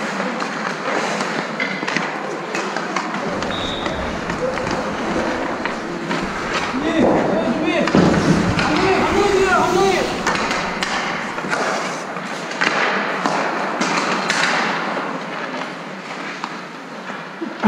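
Skate blades scrape and hiss across the ice.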